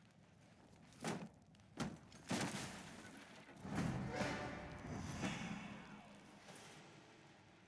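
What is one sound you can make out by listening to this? Metal parts clank and rattle as they are picked up.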